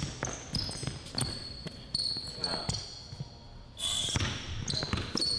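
A basketball bounces with dull thumps on a hardwood floor.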